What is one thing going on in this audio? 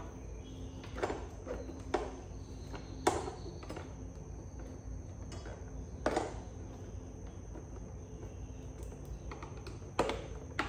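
Plastic parts click and knock as a motorbike panel is handled.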